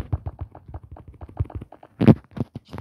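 Game blocks pop into place with rapid clicks.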